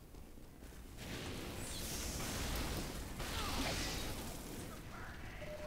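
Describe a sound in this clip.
Flames roar and hiss in a steady rush.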